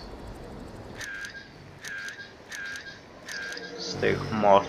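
Short electronic beeps chirp in a steady series.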